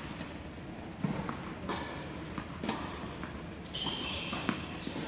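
A tennis ball bounces on a hard court in a large echoing hall.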